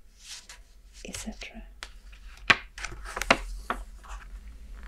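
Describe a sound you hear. A stiff book page is turned over with a flap and rustle.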